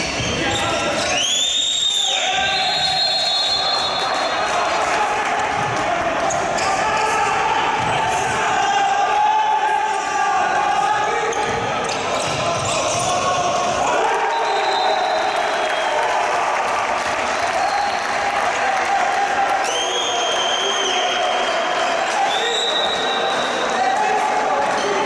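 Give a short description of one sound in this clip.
Athletic shoes squeak on a wooden court.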